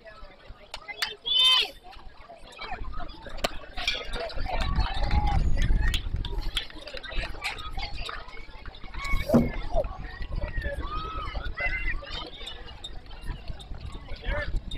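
Young players call out and chatter at a distance outdoors.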